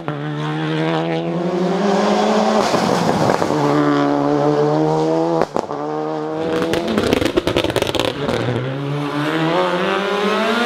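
A rally car engine revs hard, rising in pitch and dropping with each gear change.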